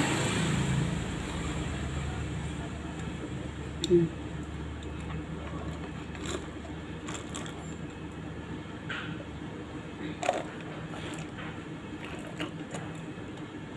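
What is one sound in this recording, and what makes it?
A woman sips water through a straw.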